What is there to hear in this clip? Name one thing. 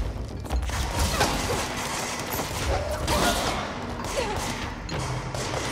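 Thrown objects smash and clatter.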